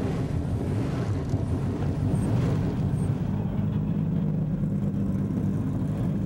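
Race car engines idle with a deep, steady rumble.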